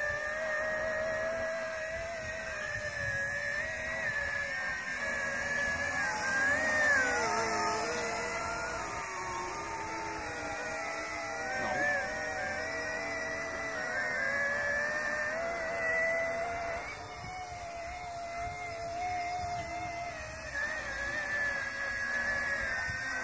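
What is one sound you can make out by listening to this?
A small remote-controlled boat's motor whines steadily, rising and falling in pitch as it turns.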